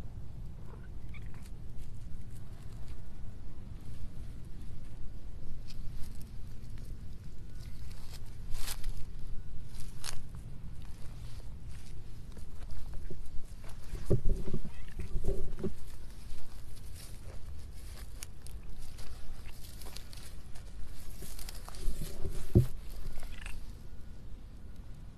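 A hand strokes a cat's fur.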